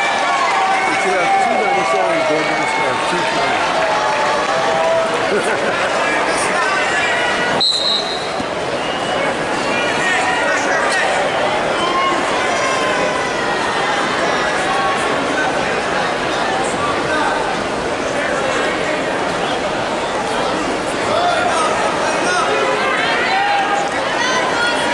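A large crowd murmurs and calls out in a big echoing hall.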